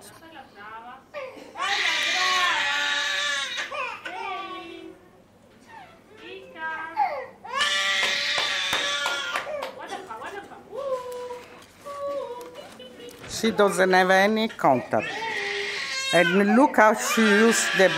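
A baby coos and babbles through a loudspeaker.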